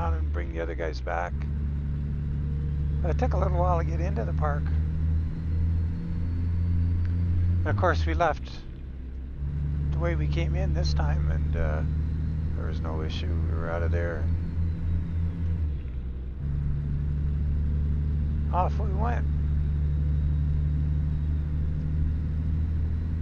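A truck engine drones steadily, dropping away briefly as the gears shift.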